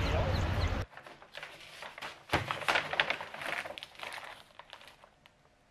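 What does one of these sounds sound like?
A plastic snack package crinkles in someone's hands.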